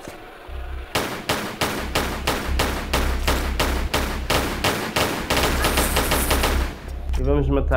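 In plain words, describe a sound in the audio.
Pistols fire in rapid bursts of shots.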